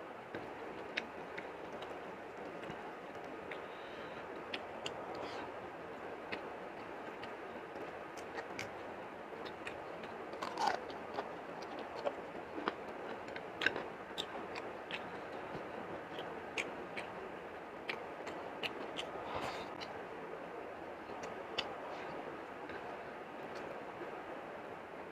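Fingers squish and mix soft food on a plate.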